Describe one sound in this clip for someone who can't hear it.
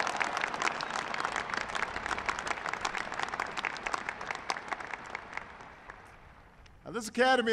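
A crowd applauds and fades away outdoors.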